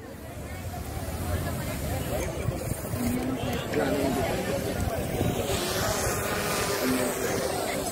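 A crowd chatters outdoors nearby.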